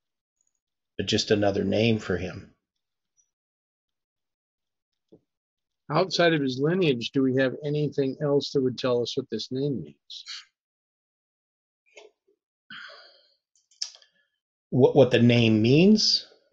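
An older man speaks calmly over an online call, in bursts with pauses.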